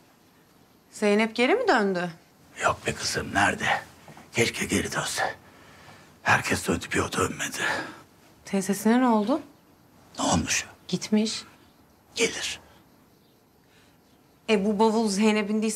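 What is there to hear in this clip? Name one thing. A young woman speaks with concern, close by.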